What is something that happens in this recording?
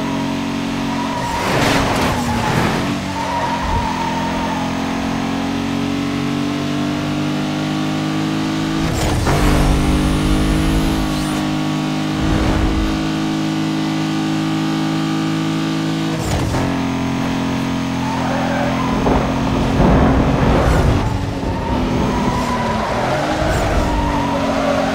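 A racing car engine roars steadily at high speed, shifting gears now and then.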